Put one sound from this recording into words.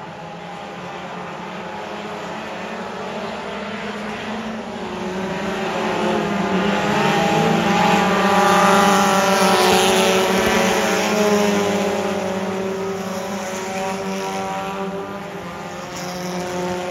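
Race car engines roar loudly around a dirt track, swelling as the cars pass close by and then fading.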